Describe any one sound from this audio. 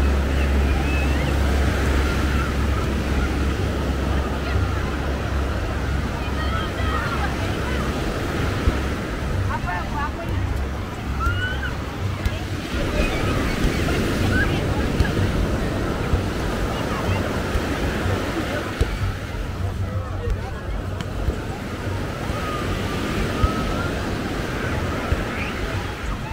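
Beachgoers chatter in the distance.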